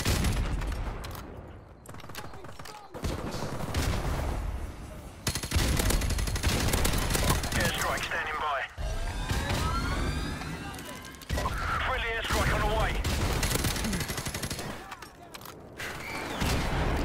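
A suppressed rifle fires.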